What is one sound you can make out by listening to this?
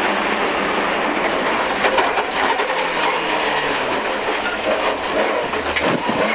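A rally car engine roars loudly from inside the cabin.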